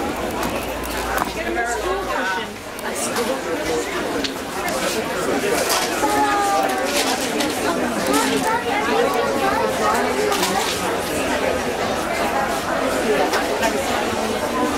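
A crowd of men and women chatter all around in a large indoor hall.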